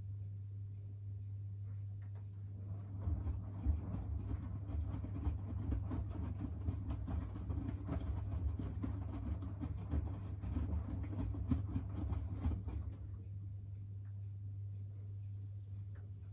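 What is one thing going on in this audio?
A washing machine hums steadily.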